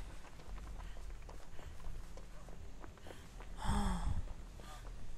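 Quick footsteps run through rustling grass and leaves.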